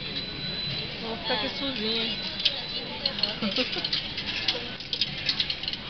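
Coins clink as they drop into a ticket machine.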